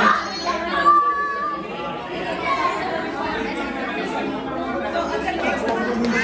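Young children shout and squeal nearby.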